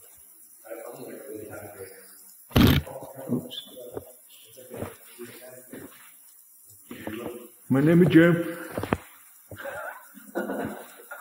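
Several men talk in an echoing tunnel.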